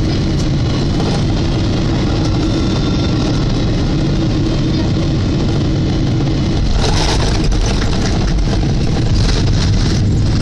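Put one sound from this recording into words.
Airplane wheels rumble and rattle over the runway.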